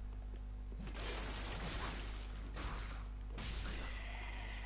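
A sword swishes through the air and strikes.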